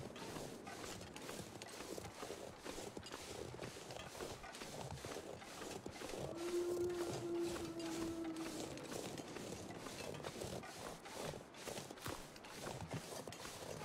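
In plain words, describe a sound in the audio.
Wind howls steadily through a snowstorm.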